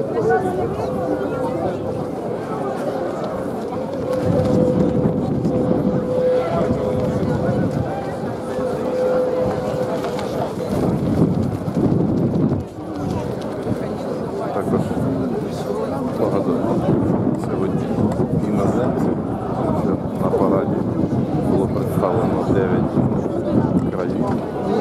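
A large crowd murmurs and chatters outdoors all around.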